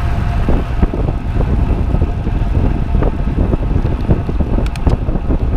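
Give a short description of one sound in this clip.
Wind rushes and buffets loudly against the microphone.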